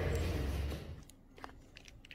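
A plastic lid crinkles as it is lifted.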